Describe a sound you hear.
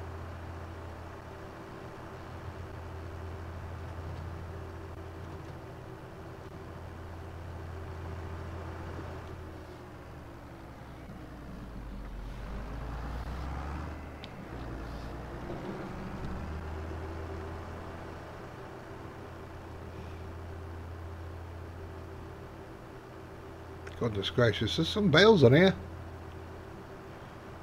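A tractor engine hums steadily from inside the cab, its pitch dipping and rising midway.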